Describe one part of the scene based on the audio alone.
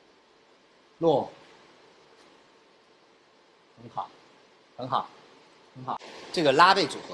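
A young man gives short, loud vocal cries.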